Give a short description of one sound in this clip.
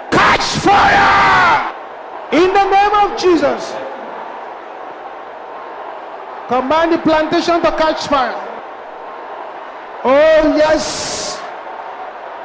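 A man preaches loudly and forcefully into a microphone.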